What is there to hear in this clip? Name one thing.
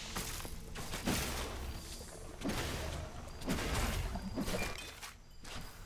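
Lightning spells crackle and zap in bursts.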